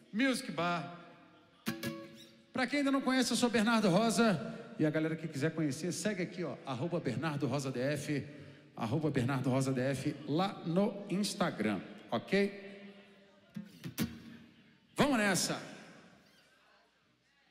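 A man sings into a microphone with strong feeling.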